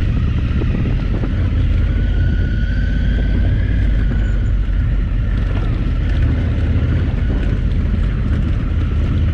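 Tyres crunch and rattle over a rough gravel track.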